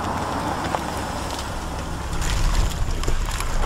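A van drives past on the road.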